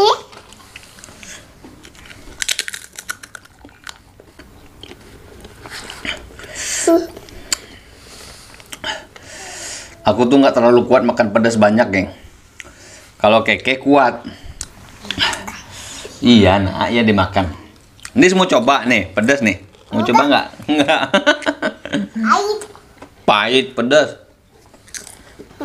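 A young girl crunches on crisp wafers.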